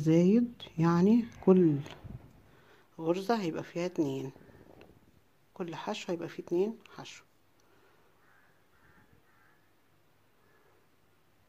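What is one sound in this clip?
Yarn rustles softly as a crochet hook pulls it through loops.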